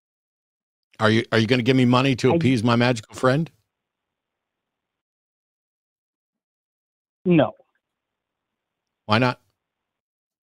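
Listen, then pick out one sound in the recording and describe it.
A middle-aged man speaks calmly into a close microphone, in short bursts.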